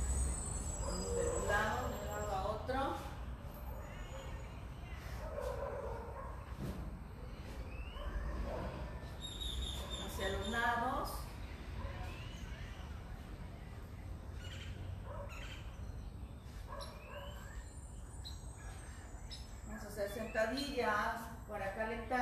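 A young woman speaks calmly, close by, pausing between phrases.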